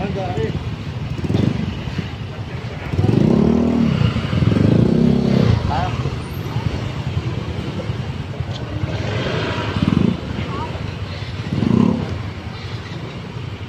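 A crowd of men and women chatters in the background outdoors.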